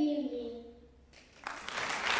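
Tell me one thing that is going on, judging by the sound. A young girl speaks into a microphone in a large hall.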